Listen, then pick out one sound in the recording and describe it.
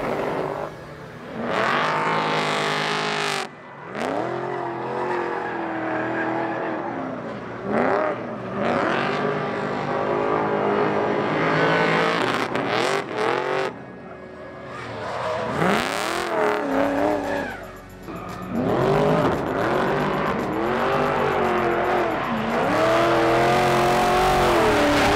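A car engine revs hard and roars, rising and falling in pitch.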